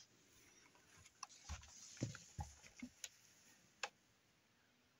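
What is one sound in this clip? A metal case is handled and knocks softly.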